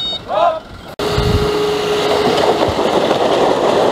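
Rocks rumble and clatter as they slide out of a tipping dump truck.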